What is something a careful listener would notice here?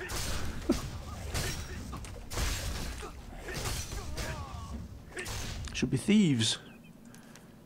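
Sword blows clash and thud in a fight.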